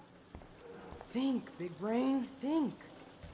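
Another young woman speaks playfully.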